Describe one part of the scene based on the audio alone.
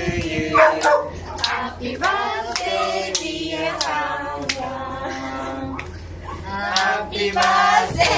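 Young women clap their hands in rhythm.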